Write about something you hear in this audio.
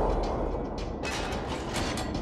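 Shells explode with sharp cracks.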